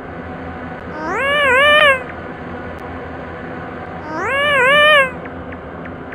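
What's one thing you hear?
A warbling electronic sound effect rises and wobbles twice.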